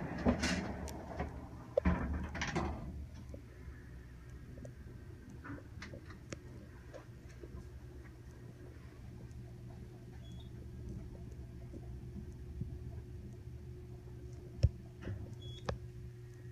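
An elevator hums steadily as it rides upward.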